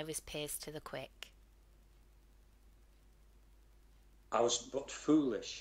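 A woman reads aloud over an online call.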